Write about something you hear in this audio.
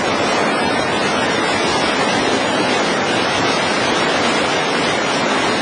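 River rapids rush and roar loudly close by.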